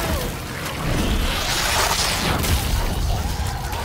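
A weapon fires in sharp, loud bursts.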